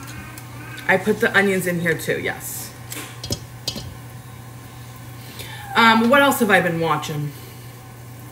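Wet ground meat squishes between hands.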